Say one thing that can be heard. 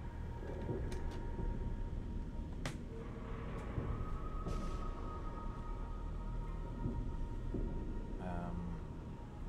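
Plastic toy bricks clatter and click as a hand sorts through them.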